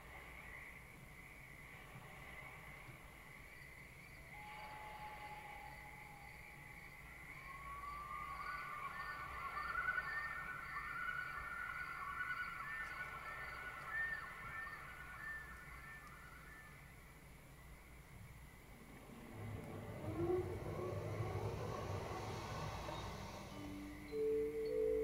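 Electronic music with high warbling tones plays through loudspeakers in a large room.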